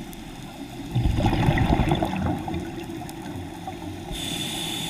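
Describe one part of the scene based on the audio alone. Air bubbles gurgle and rumble underwater.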